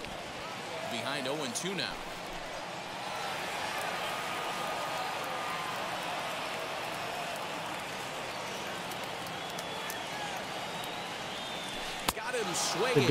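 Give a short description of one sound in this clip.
A crowd murmurs and cheers in a large stadium.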